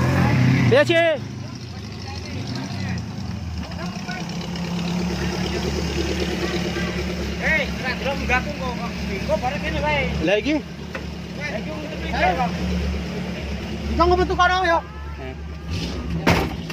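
An off-road jeep's engine idles and rumbles close by.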